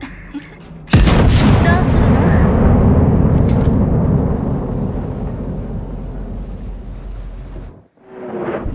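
Heavy naval guns fire with a deep boom that rumbles and slowly fades.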